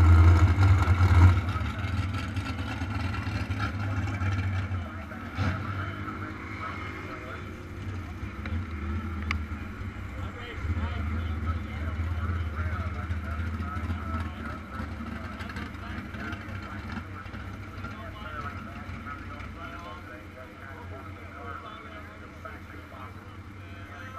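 An engine idles nearby with a low, steady rumble.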